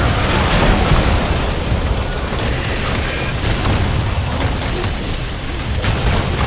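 Game spell blasts and hits crackle and thud in a busy battle.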